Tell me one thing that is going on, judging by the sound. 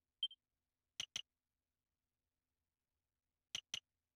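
Pairs of soft clicks sound as panels are chosen.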